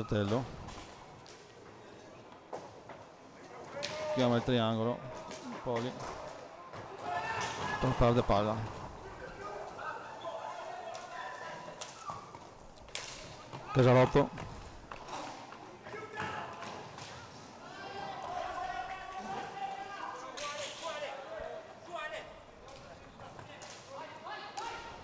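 Players shout to each other across the hall.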